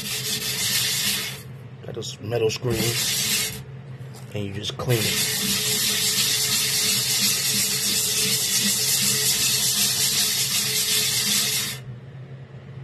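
A scrubbing pad scours a metal surface with a harsh, rasping hiss.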